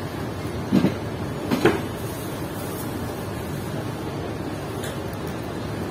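Hands squish and toss wet sliced vegetables in a plastic bowl.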